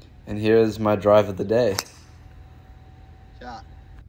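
A golf driver strikes a ball off the tee with a sharp crack.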